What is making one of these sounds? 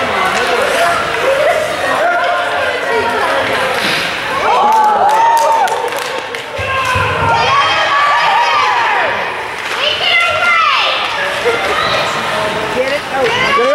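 Spectators cheer and shout loudly in an echoing rink.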